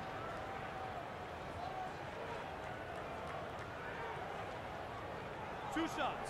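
A large arena crowd murmurs steadily.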